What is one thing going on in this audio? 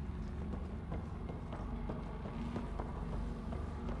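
Heavy armored footsteps thud on a metal floor.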